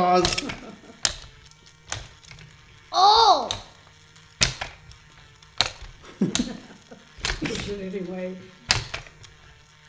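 Plastic toy levers snap and click sharply now and then.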